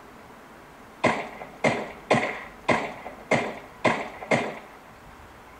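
Gunshots from a mobile game crack in quick succession through a small phone speaker.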